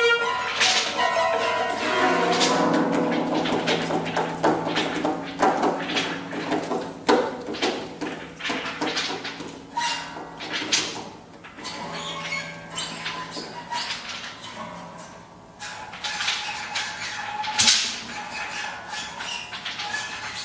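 A harp plucks ringing notes.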